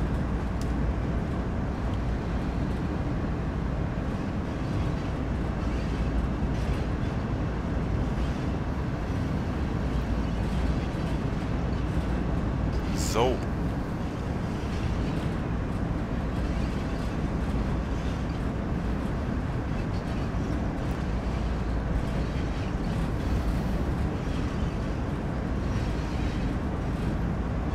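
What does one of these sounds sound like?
Steel wheels clatter over rail joints.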